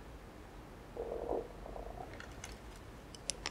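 A young woman takes a mouthful with a soft slurp.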